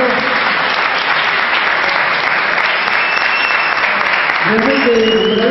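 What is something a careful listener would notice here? A crowd applauds in an echoing hall.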